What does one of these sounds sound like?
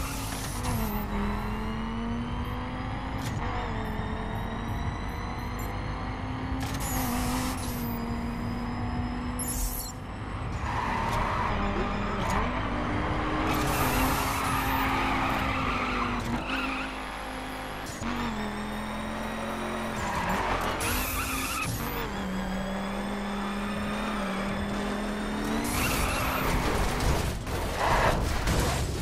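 A race car engine roars steadily and changes pitch as the car shifts gears.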